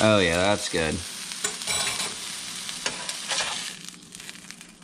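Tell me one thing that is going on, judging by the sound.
A fish fillet sizzles in a frying pan.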